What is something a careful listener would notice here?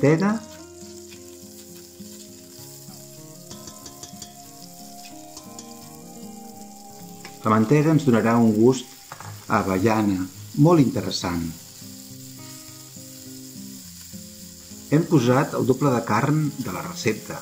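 A spatula scrapes against the bottom of a pot.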